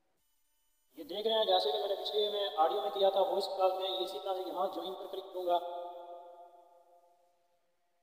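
A phone ringtone plays a short melody.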